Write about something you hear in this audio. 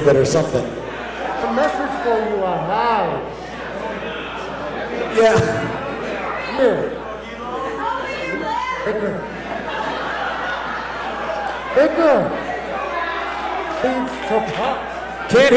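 A man speaks into a microphone in a croaky, animated character voice, heard over loudspeakers in a large hall.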